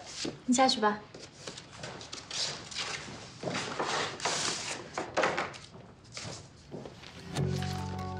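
Paper rustles as sheets are handled.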